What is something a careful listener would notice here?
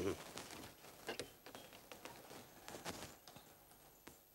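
A man knocks on a wooden door.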